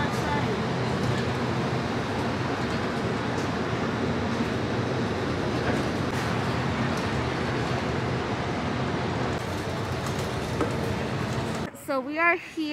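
A bus engine rumbles steadily while riding.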